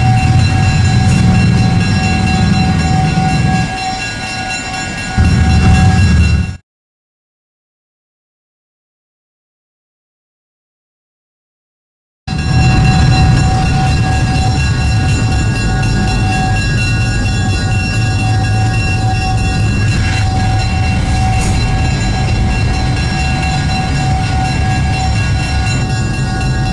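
A diesel locomotive engine idles with a low, steady rumble.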